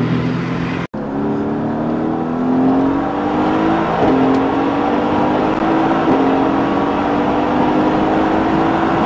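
A sports car engine revs up hard from inside the car, rising in pitch with quick gear changes.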